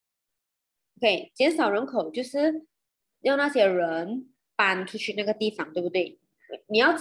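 A young woman speaks calmly, heard through an online call.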